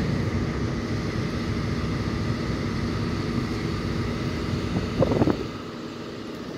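Motorcycle engines idle in the distance.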